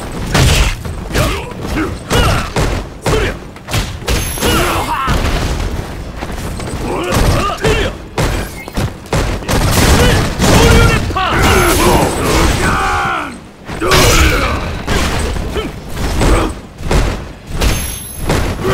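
Punches and kicks land with sharp, heavy smacks.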